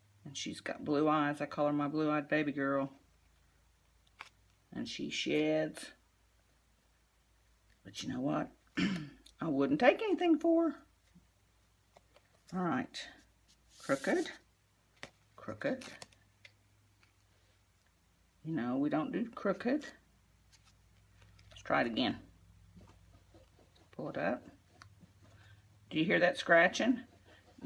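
Stiff card rustles and scrapes as it is handled.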